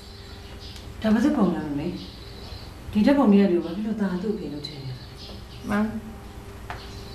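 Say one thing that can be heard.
A woman speaks earnestly up close.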